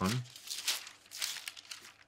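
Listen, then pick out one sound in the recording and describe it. Paper rustles as a man leafs through pages.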